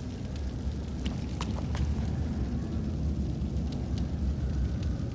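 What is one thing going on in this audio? Footsteps thud on creaking wooden planks.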